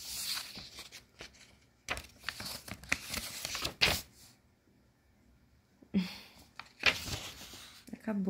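Paper pages rustle and flap as a book's pages are turned.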